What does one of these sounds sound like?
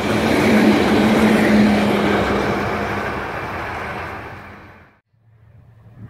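A freight train rumbles past loudly and close by.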